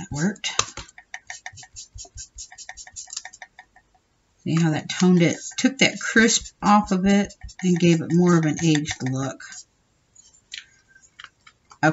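An ink applicator dabs and rubs against paper.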